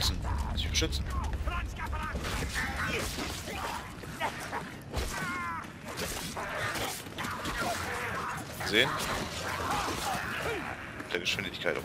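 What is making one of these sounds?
Creatures screech and snarl.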